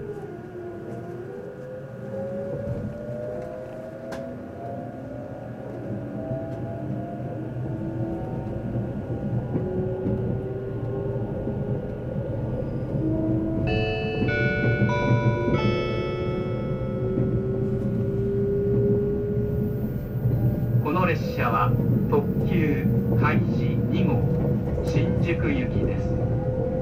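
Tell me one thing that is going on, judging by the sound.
A train rumbles steadily along the tracks, its motor whining as it picks up speed.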